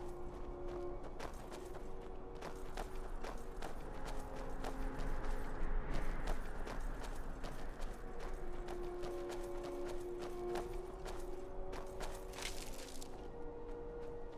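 Armoured footsteps crunch steadily over gravel and stone.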